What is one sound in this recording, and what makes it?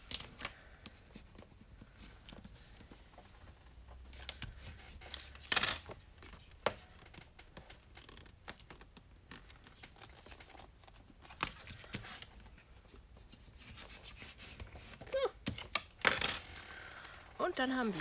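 A bone folder scrapes along creased paper.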